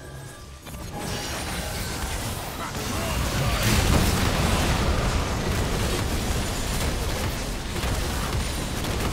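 Magic spells crackle and blast in a video game battle.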